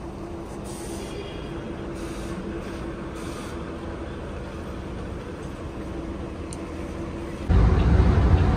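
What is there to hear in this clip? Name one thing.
An engine idles nearby with a steady hum.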